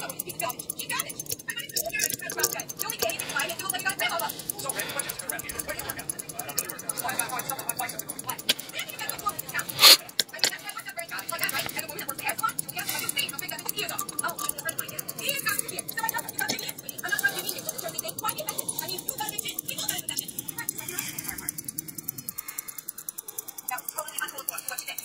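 A watch movement ticks rapidly and steadily close by.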